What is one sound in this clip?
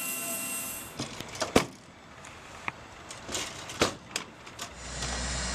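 A metal latch clicks and clanks on a helicopter's rotor.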